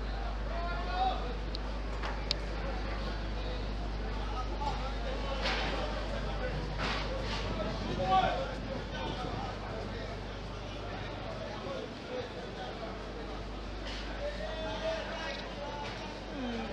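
A crowd of people chatters outdoors at a distance.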